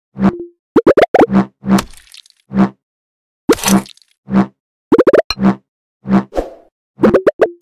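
Quick whooshing swishes sound again and again as a blade slices.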